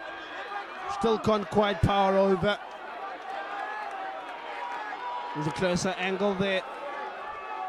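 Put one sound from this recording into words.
Young men shout loudly nearby.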